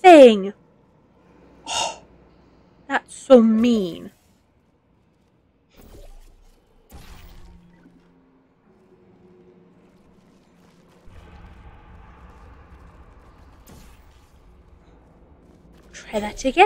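A woman speaks with animation, close to a microphone.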